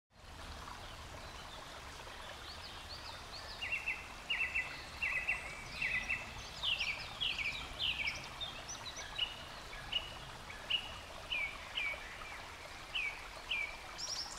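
Water trickles over stones in a small stream.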